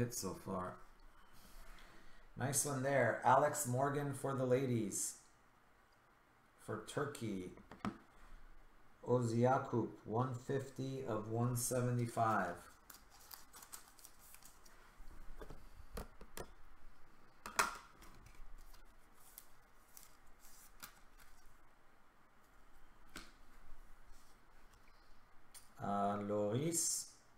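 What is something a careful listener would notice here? Trading cards and plastic sleeves rustle and tap in close hands.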